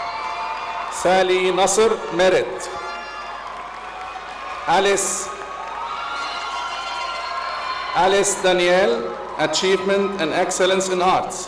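A crowd cheers and shouts in short bursts.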